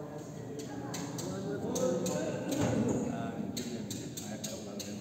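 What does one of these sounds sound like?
Elderly men talk calmly nearby in a large echoing hall.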